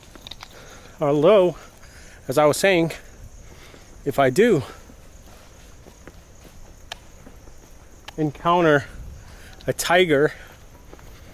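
A young man speaks in short bursts close to the microphone, outdoors.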